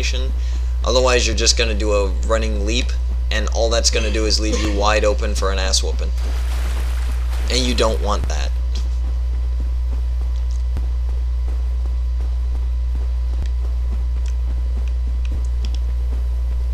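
Armoured footsteps clank on the ground.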